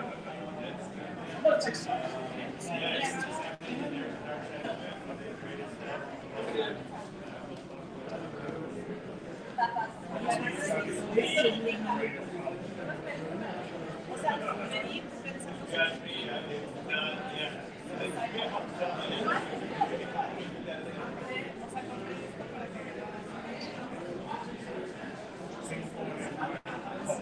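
Several adults talk and chatter together nearby in a room.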